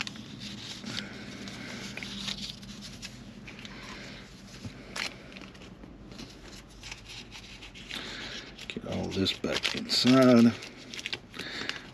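Paper rustles and crinkles in a person's fingers.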